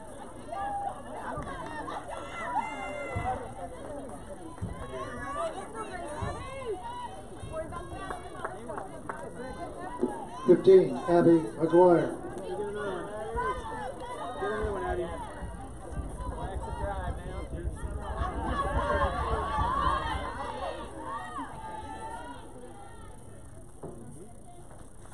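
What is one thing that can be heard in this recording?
Young women call out and cheer across an open outdoor field.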